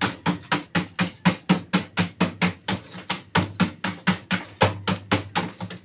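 A small tool taps rapidly and steadily on a metal pot.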